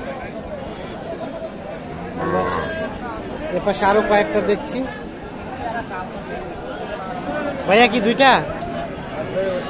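Many people chatter in a busy outdoor crowd.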